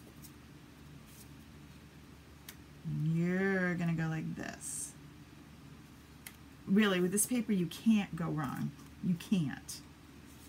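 Stiff paper card rustles and slides as hands handle it.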